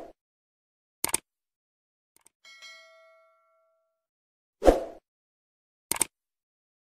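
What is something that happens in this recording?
A mouse button clicks.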